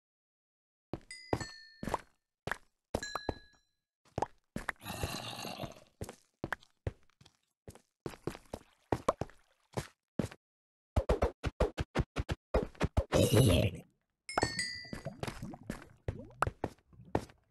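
A pickaxe chips at stone and dirt in quick repeated knocks.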